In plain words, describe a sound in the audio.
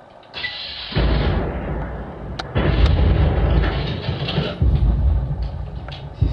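A rifle fires with loud bangs.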